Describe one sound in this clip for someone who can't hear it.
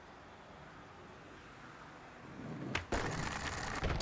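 Skateboard wheels roll over pavement.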